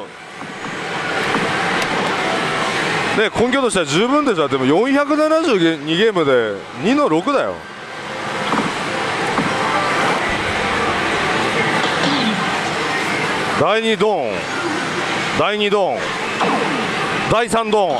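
Many gaming machines clatter and chime in a noisy hall.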